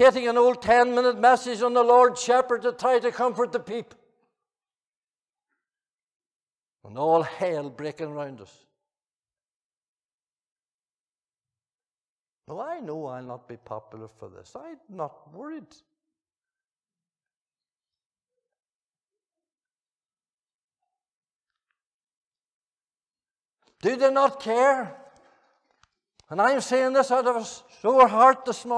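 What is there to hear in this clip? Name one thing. An elderly man speaks slowly and with feeling into a microphone, with pauses between phrases.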